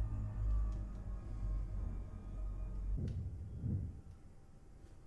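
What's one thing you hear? A spacecraft engine hums with a deep, steady rumble, then quickly dies away.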